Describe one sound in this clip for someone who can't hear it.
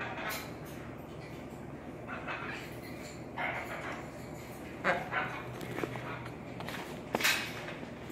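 Parrots squawk and chatter in short bursts.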